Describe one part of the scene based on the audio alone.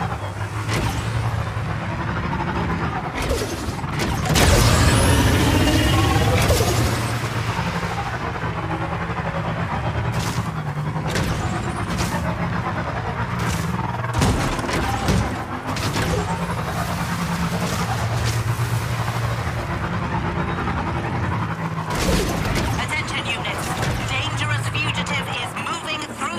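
Tyres crunch over rough ground.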